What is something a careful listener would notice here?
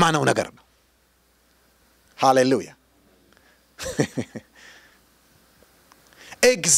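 A middle-aged man preaches with animation into a microphone, in short bursts with pauses.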